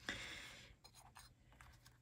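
A stamp taps lightly on paper.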